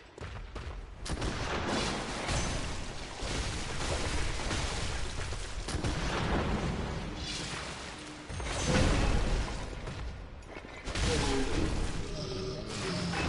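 A large brute swings a heavy weapon with thudding blows.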